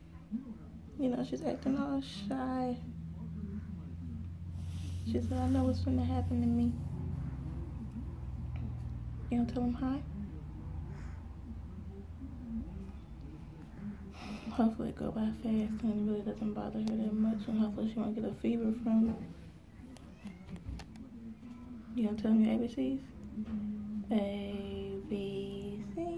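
A woman speaks softly and warmly close by, in short bursts with pauses.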